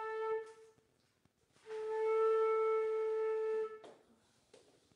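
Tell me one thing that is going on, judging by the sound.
A small group of wind instruments plays a held note together.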